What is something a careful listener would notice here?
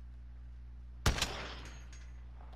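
A rifle fires a single loud shot that rings out briefly.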